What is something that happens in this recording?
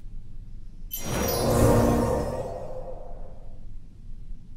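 A deep whooshing swell rises and fades.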